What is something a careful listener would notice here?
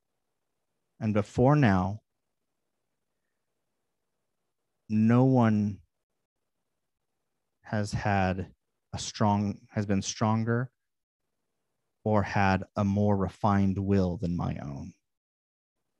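A man speaks with animation into a headset microphone, heard through an online call.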